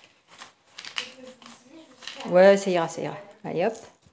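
Ground spice rattles softly as a small jar is shaken.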